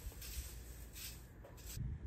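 A rake scrapes over the ground.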